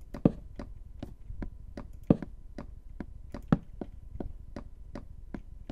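Footsteps tap quickly and evenly across a wooden floor.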